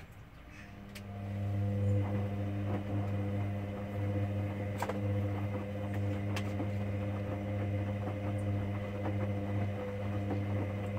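A washing machine motor hums steadily as the drum turns.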